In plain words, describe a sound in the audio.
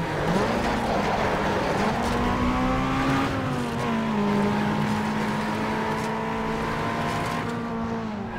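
A racing car engine roars loudly, its pitch rising as it speeds up and dropping at gear changes.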